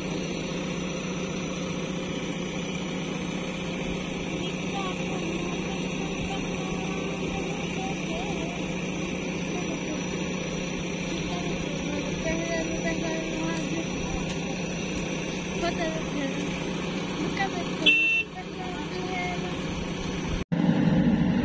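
A backhoe's diesel engine rumbles steadily close by.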